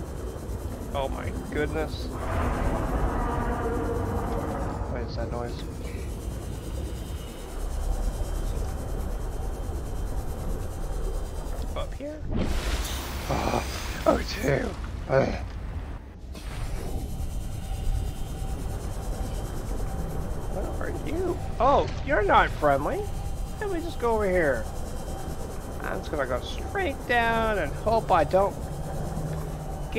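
A small submarine's engine hums low and steadily underwater.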